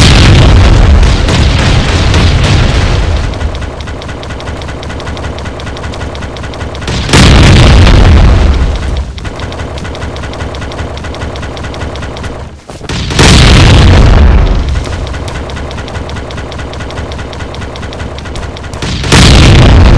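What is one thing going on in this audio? Loud explosions boom again and again.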